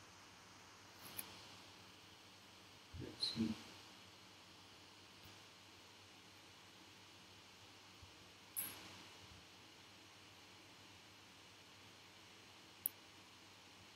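Laptop keys click now and then.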